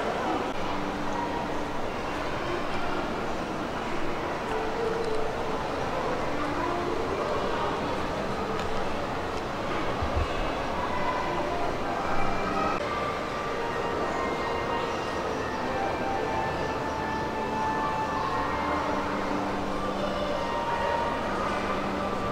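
People talk in a low murmur in a large echoing hall.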